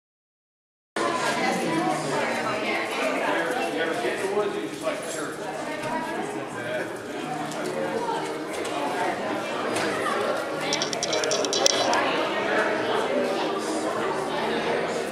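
A crowd of men and women chatter at once in a large echoing hall.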